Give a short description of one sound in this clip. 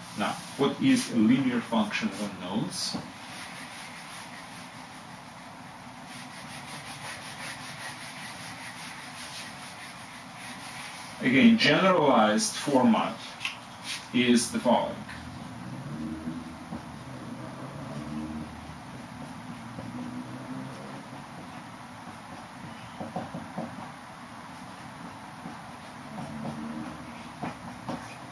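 A man speaks calmly, close by, as if lecturing.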